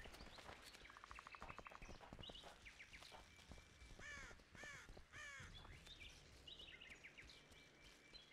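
Footsteps crunch through grass and undergrowth.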